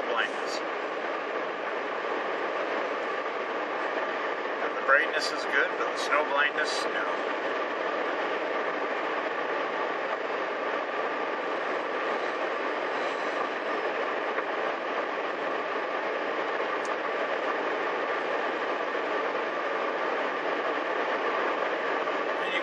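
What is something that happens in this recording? A car's engine and road noise hum steadily inside the cabin.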